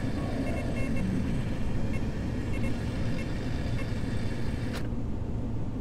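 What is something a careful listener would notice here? A small propeller plane's engine drones steadily from inside the cockpit.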